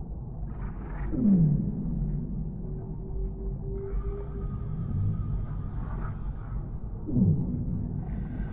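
Whales call with low, sweeping moans underwater.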